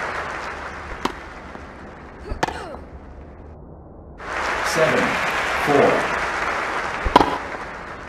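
A tennis racket strikes a ball.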